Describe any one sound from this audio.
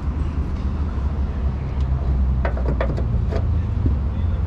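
A metal hood prop rod clicks and rattles.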